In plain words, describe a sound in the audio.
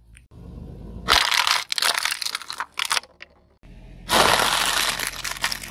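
Plastic bottles crackle and pop as a tyre crushes them.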